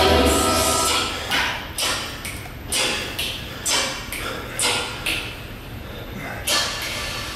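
A young man breathes out hard and sharply in a steady rhythm.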